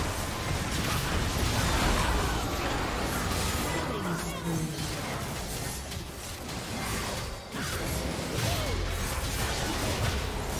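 Spell blasts and magic effects crackle and boom in a fight.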